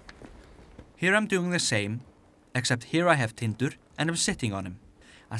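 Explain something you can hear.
A man speaks calmly.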